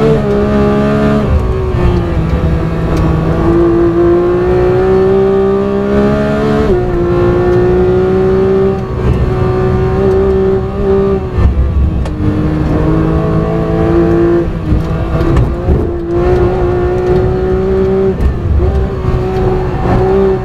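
A race car engine roars loudly, rising in pitch and dropping sharply at each gear change.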